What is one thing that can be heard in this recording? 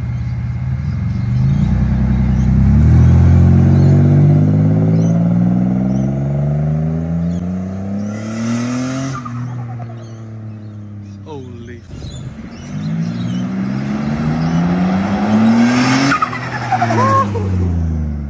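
A car engine roars and climbs in pitch as the car speeds away, rising again after each gear change.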